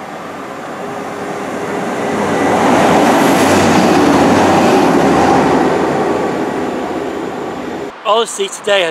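A passenger train rumbles past along the tracks and fades away.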